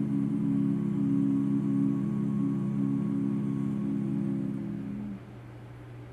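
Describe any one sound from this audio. A group of men sing a sustained chord in close harmony in a large hall.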